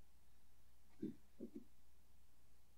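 Someone shifts on a bed with a few soft, dull thumps.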